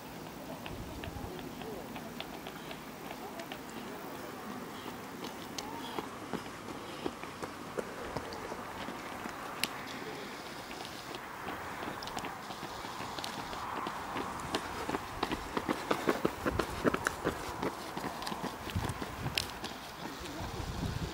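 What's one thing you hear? Running footsteps slap on asphalt, close by.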